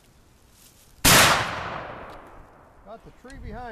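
A rifle fires a single loud shot that echoes through the woods and fades.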